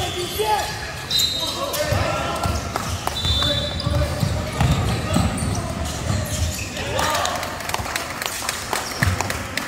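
Sneakers squeak sharply on a wooden court.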